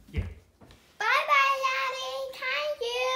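A young boy sings loudly close by.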